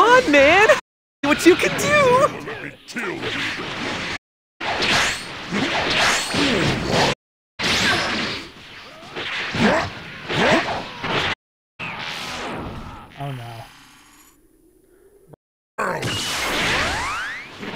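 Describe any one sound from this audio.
Energy blasts whoosh and roar.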